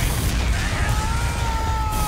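A flamethrower roars with a steady rushing whoosh.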